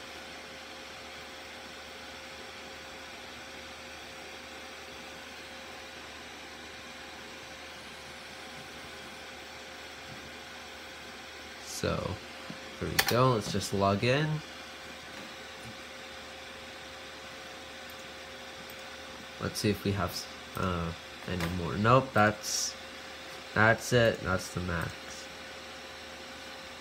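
A computer fan hums steadily.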